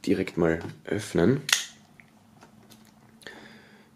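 A folding knife clicks open.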